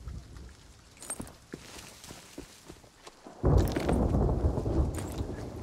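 Leaves rustle as someone pushes through dense bushes.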